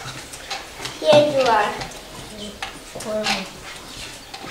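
A young boy talks and laughs nearby.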